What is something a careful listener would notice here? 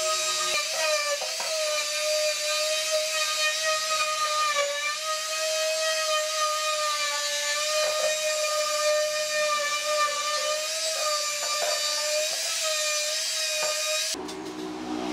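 An electric sander whirs steadily.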